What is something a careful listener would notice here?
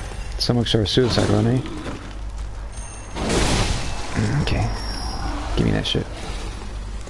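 A heavy blade swings and strikes.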